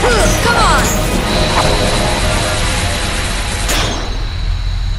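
Electric magic crackles and bursts loudly.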